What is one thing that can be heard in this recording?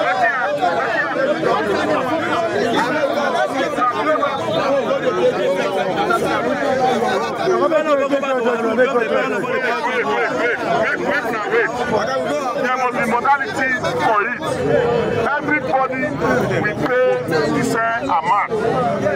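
A crowd of men talk and shout over one another close by.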